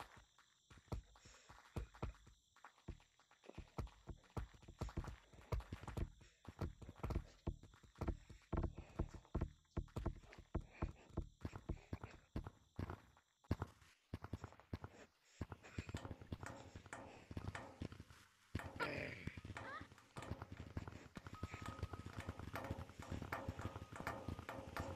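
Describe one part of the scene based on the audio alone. Hands slap and thump on hard ground in quick, uneven bursts.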